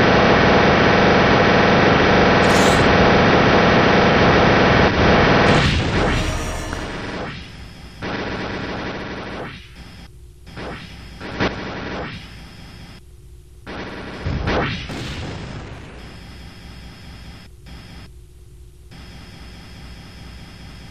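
Game explosions and laser shots crackle and bang in quick bursts.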